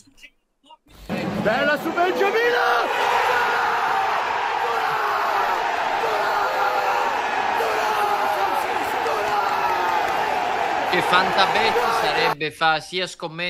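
A large stadium crowd roars and chants loudly.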